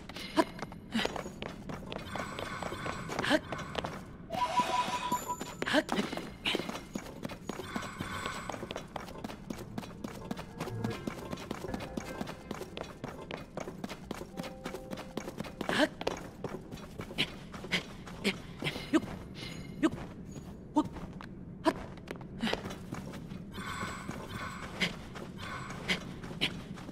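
Hands and feet thud and scrape on rock during a climb.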